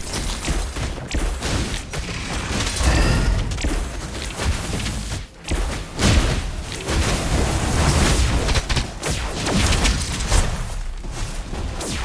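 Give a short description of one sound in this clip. Game battle sound effects of blasts and impacts play loudly and continuously.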